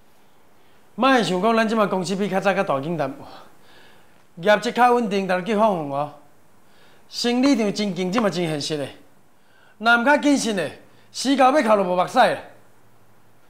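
A middle-aged man speaks sternly.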